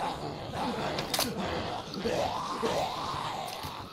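A shotgun snaps open and shut with a sharp metallic click.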